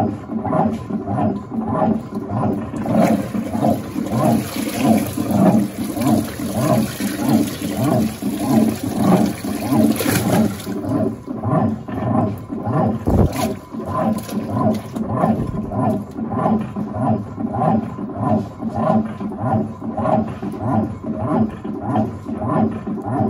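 A washing machine agitator churns back and forth with a steady rhythmic thrum.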